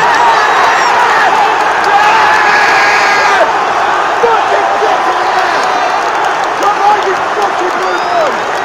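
A large crowd of fans cheers and chants loudly in an open stadium.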